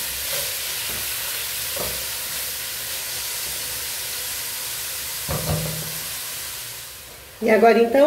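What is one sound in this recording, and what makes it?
Food sizzles and hisses in a pot.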